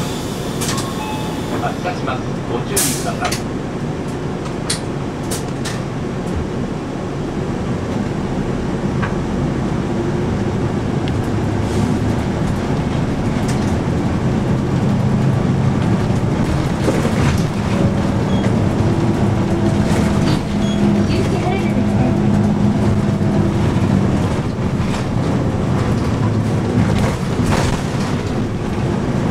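A bus engine hums and rumbles steadily from inside the vehicle.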